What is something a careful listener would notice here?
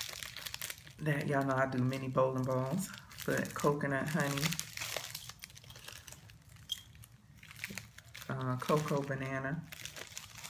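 Plastic wrapping crinkles in hands.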